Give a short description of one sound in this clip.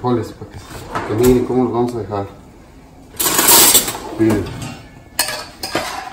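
Metal cutlery rattles in a drawer.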